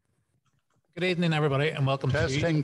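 A young man sings loudly and close into a microphone.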